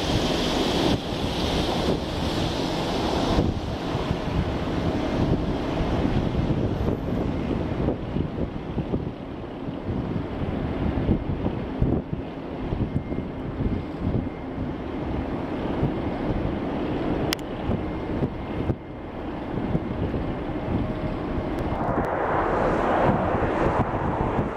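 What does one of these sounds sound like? A jet airliner's engines rumble steadily as it taxis in the distance.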